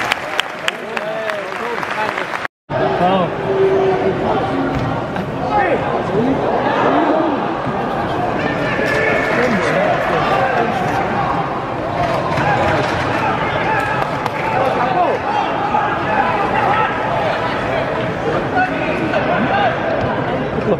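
A crowd of spectators chants and shouts in a large open stadium.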